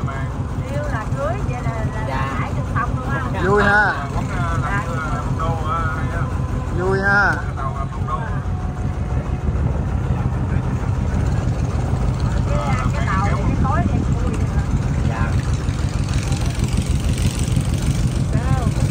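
A boat engine rumbles steadily throughout.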